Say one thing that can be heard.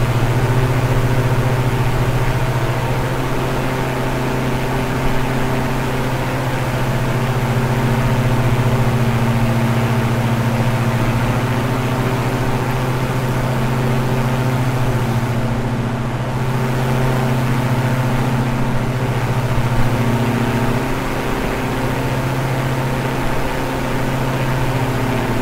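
Twin propeller engines drone steadily with a deep hum.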